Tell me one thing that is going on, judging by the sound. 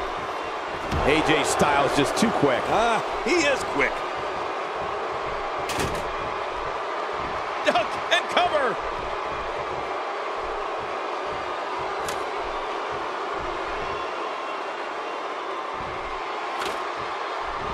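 Bodies slam hard onto a mat.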